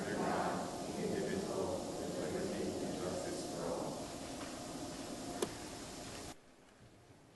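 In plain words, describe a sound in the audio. A crowd of adults recites together in unison in a large echoing hall.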